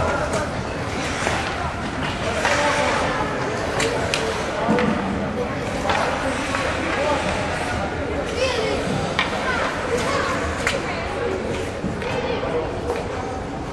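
Ice skates scrape and hiss across an ice rink.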